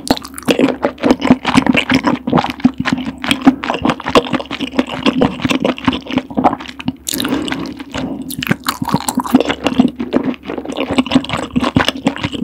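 A woman chews soft, creamy food close to a microphone, with wet smacking sounds.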